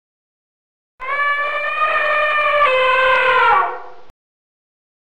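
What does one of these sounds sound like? An elephant trumpets loudly and long.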